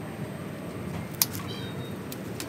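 A spray bottle squirts a few times.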